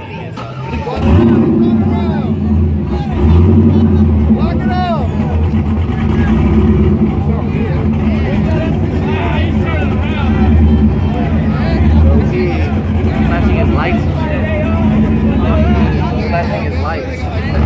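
A car engine revs loudly and roars nearby.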